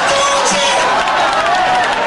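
A man preaches loudly and fervently through a microphone.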